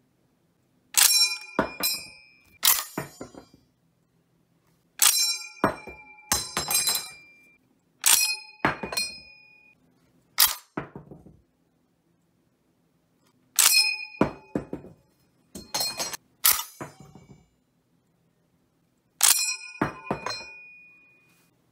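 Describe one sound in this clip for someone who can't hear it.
An M1 Garand rifle ejects its steel en-bloc clip with a ringing ping.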